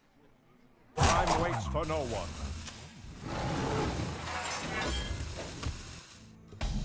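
Magical game sound effects whoosh and sparkle.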